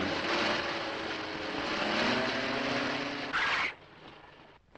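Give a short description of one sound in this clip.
A car drives along a dirt road.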